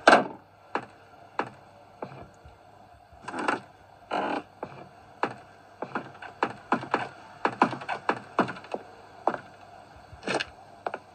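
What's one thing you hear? Footsteps thud on a wooden floor at a steady walking pace.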